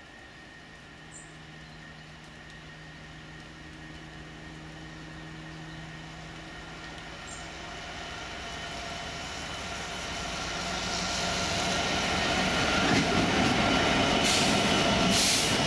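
A diesel locomotive engine drones as it approaches, growing steadily louder.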